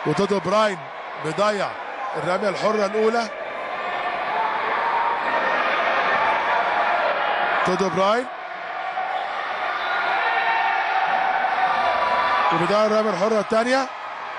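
A crowd in a large hall cheers and murmurs.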